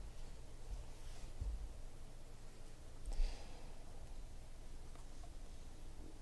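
Trading cards shuffle and rustle in hands.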